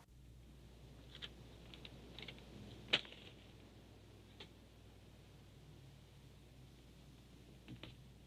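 Playing cards are shuffled and dealt onto a table.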